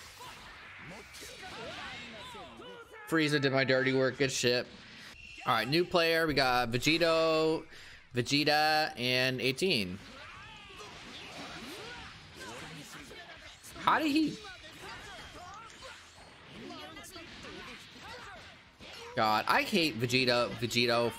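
Punches and energy blasts thud and crackle in a fast fight.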